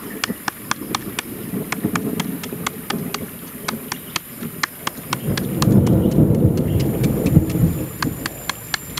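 A knife blade scrapes quickly along a carrot in short, rasping strokes.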